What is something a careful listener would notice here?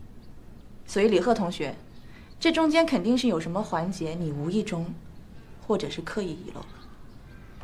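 A woman speaks firmly and with emphasis close by.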